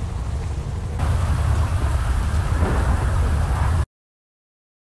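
Thunder rumbles loudly.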